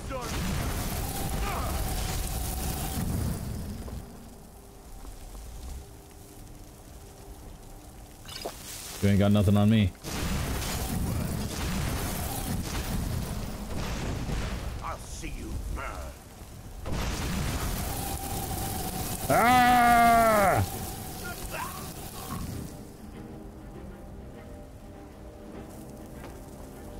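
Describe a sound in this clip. A man talks into a headset microphone.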